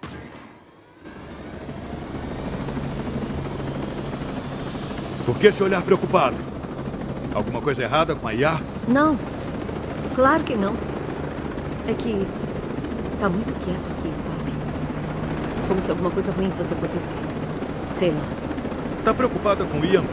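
A helicopter engine whines and its rotor drones steadily.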